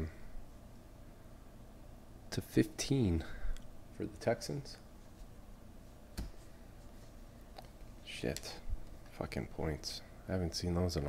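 Trading cards slide and flick against each other in someone's hands.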